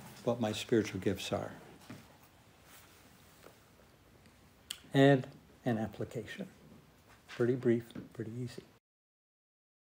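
An elderly man speaks calmly, a little distant.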